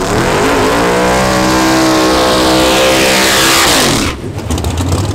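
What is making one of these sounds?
Tyres screech as they spin on the track.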